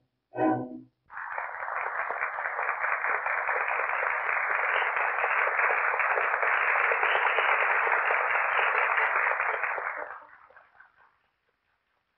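A large audience applauds loudly in an echoing hall, then fades out.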